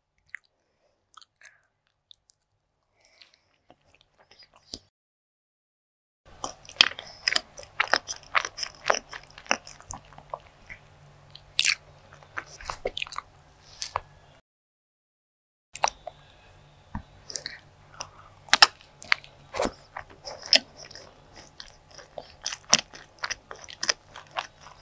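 A person chews and smacks food loudly close to a microphone.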